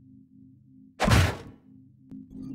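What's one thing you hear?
A small creature falls flat onto the floor with a thud.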